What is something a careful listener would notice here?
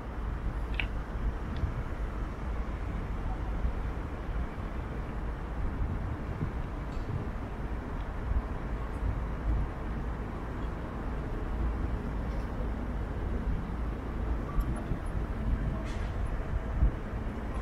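Wind rushes past in a low, steady roar.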